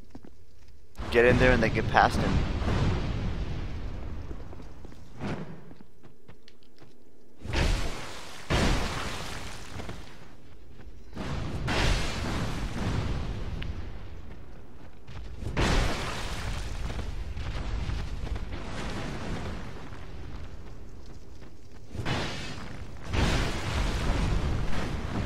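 A fireball bursts with a loud roar.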